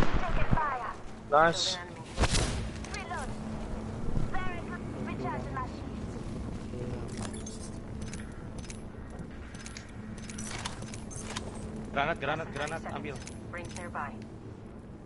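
A young man talks casually into a headset microphone.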